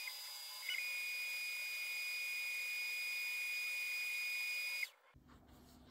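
A machine hums with a steady high whine.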